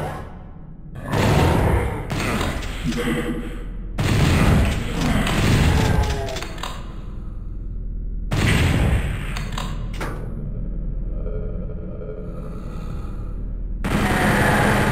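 Gunshots blast loudly in quick bursts.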